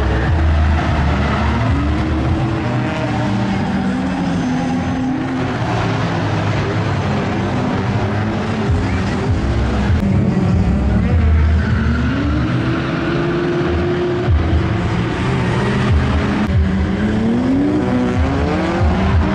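Sports car engines rev loudly outdoors, their pitch rising and falling again and again.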